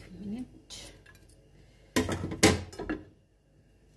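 A metal utensil clatters against a pan.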